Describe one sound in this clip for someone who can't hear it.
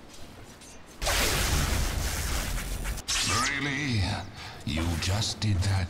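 Spell effects whoosh and crackle in a fight.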